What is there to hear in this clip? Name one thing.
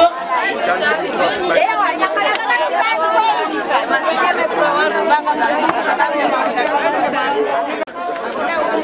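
A woman speaks with animation into a microphone over a loudspeaker.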